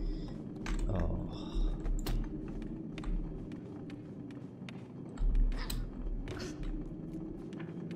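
A young man talks quietly into a close microphone.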